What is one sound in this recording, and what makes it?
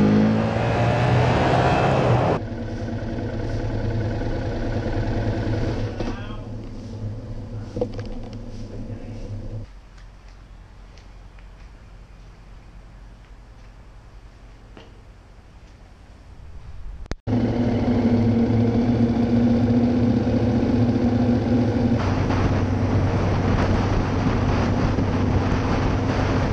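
A motorcycle engine roars and revs while riding at speed.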